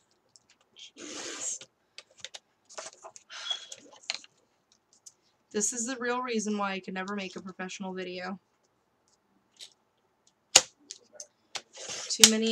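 A paper trimmer blade slides and slices through card.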